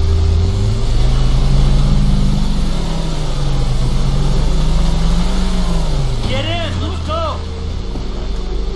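A motorboat engine drones, rising and falling in pitch.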